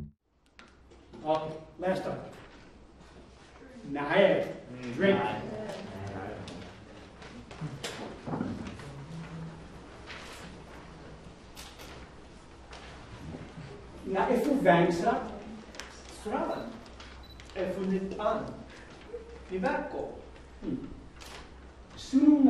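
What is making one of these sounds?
A man speaks calmly to an audience in a room with some echo.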